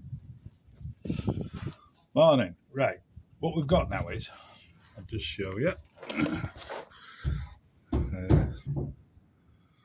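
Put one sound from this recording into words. A middle-aged man talks with animation close to the microphone.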